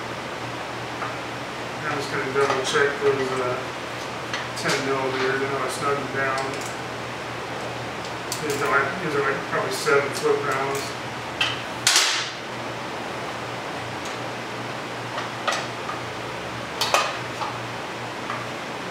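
Metal tools click and clink against an engine.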